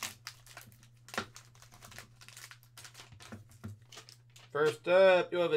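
Plastic wrapping crinkles and rustles in hands.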